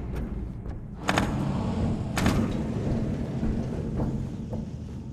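Heavy boots clank on a metal grating.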